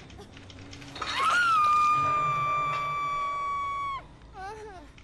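A man screams loudly in pain.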